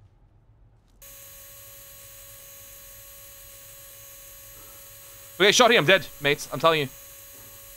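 An electrical device hums steadily.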